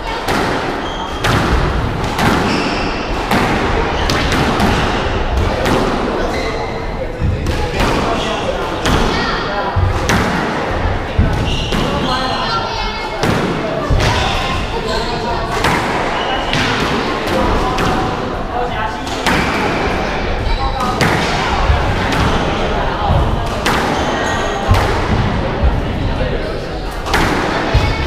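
Rubber soles squeak and thud on a wooden floor.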